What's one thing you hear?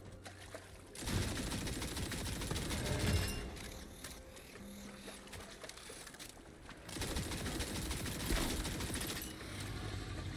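Heavy gunfire roars in loud bursts.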